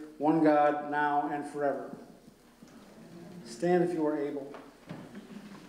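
An elderly man chants slowly through a microphone in an echoing room.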